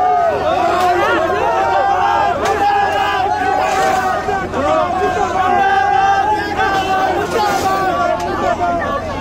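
A crowd of men shouts and chants loudly close by.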